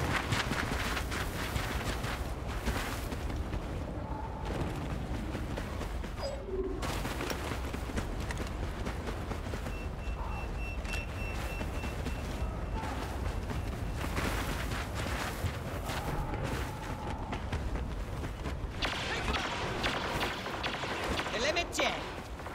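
Footsteps hurry through soft sand.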